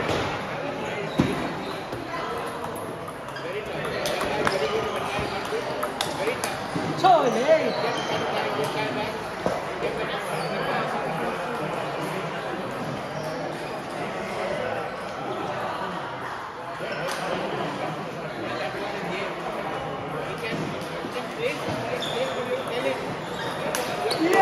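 A ping-pong ball clicks sharply back and forth off paddles and a table.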